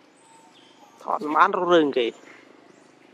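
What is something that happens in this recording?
A young monkey squeals loudly and shrilly.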